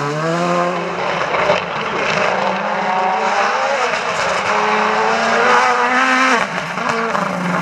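A rally car engine roars loudly, revving up and down through the gears.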